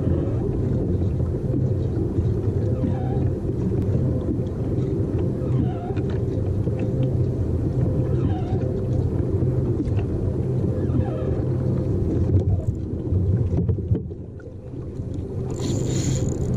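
Water laps against the hull of a small boat.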